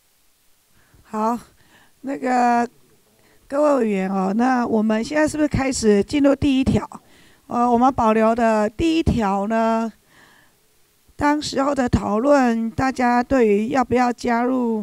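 A woman speaks calmly through a microphone in a large room.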